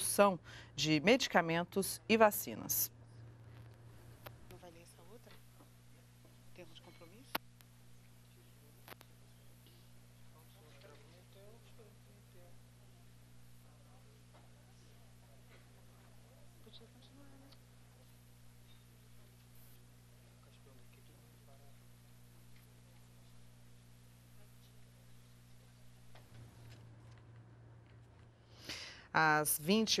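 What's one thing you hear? Men and women murmur softly and quietly in a large room.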